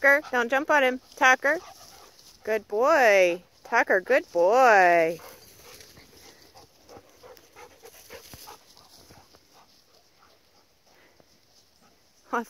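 Dogs run and scuffle on grass.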